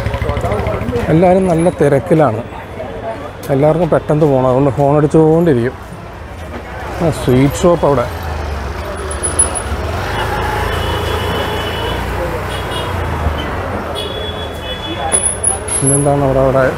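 Motor scooters putter past.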